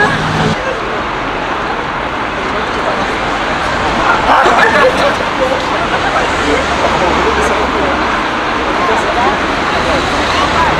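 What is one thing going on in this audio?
A crowd of adults murmurs and chatters outdoors.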